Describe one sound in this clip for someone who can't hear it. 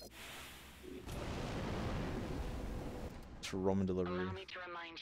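A spaceship engine roars as the ship lifts off.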